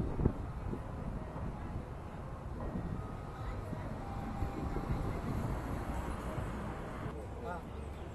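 A car drives by on a nearby street.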